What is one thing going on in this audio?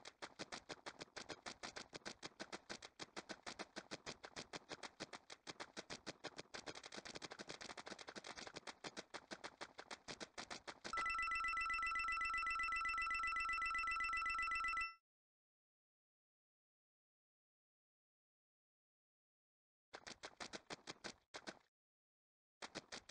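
Quick light footsteps patter rapidly.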